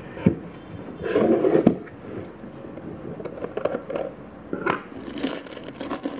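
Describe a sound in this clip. A plastic wrapper crinkles and rustles.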